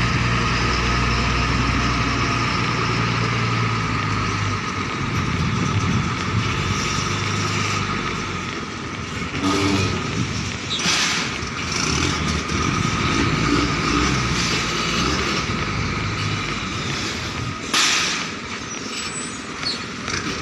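A truck's diesel engine idles and rumbles nearby.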